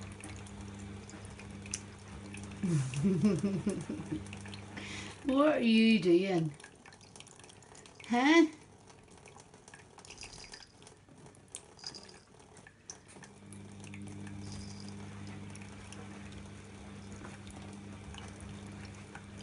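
A thin stream of water trickles steadily from a tap into a metal sink.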